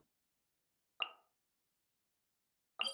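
Short electronic clicks sound.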